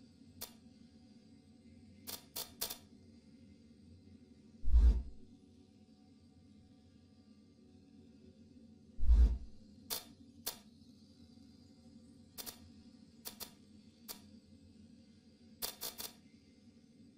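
Short menu clicks and blips sound as items are selected.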